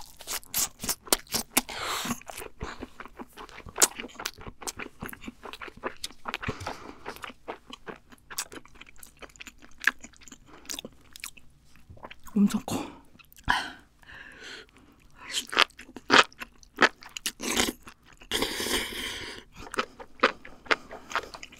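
A young woman eats noisily close to a microphone, with wet smacking and chewing.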